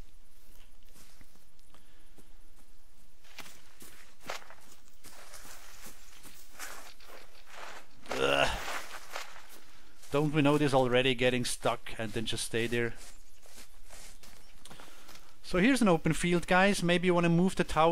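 Footsteps rustle through tall grass and dry leaves.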